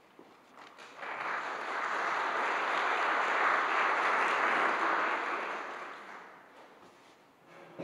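An audience claps, rising to loud applause and then fading away in a large echoing hall.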